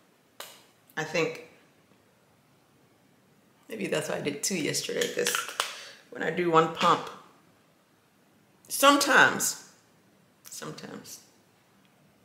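A young woman talks calmly and close to the microphone, in short bursts with pauses.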